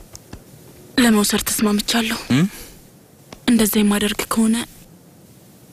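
A young woman speaks in an upset voice close by.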